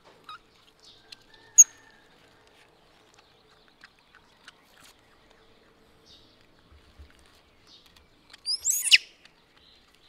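A young monkey squeaks shrilly.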